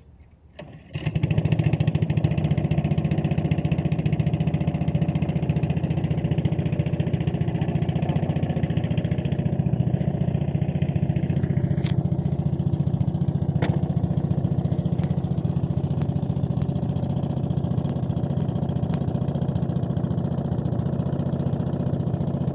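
A boat engine starts up and drones steadily close by.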